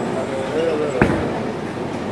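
A bowling ball thuds onto the lane in a large echoing hall.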